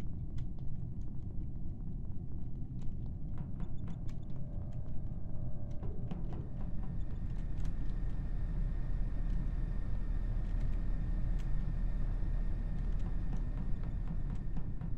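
Quick soft footsteps patter in a game.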